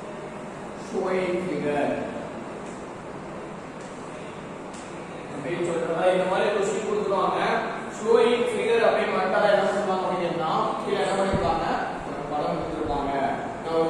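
A young man speaks in a calm, explaining voice nearby.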